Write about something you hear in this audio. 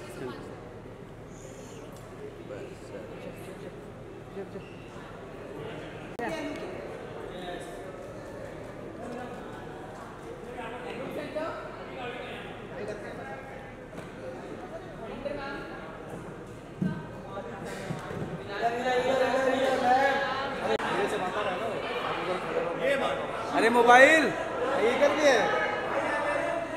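A crowd of men and women chatter and call out nearby, growing louder and livelier toward the end.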